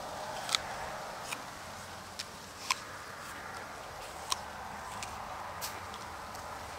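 A man chews food with crunching bites close by.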